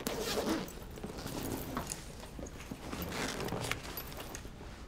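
A bag's fabric rustles as it is opened.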